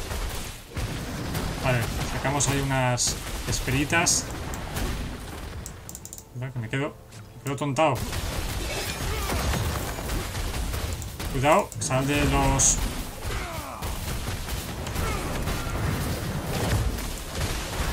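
Game spells and hits crackle and boom.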